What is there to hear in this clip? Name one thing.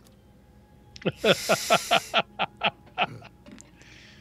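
A man laughs loudly over a microphone.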